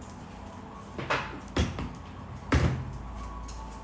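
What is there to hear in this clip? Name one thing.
Cups and dishes clink on a table.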